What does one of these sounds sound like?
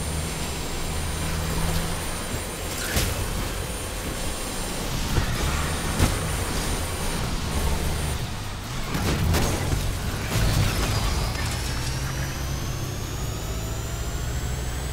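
A race car engine roars and revs at high speed.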